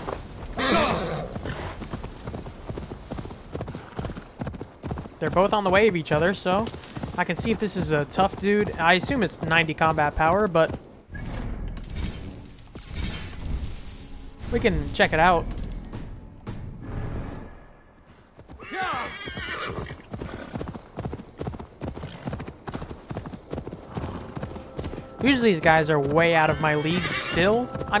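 Horse hooves thud steadily on grass at a gallop.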